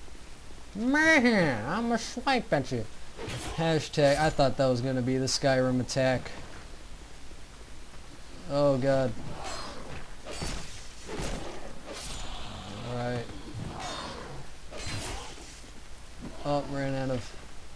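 Blades strike and clash in a fight.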